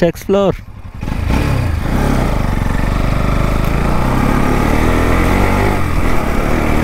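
A motorcycle engine drones as the bike rides off.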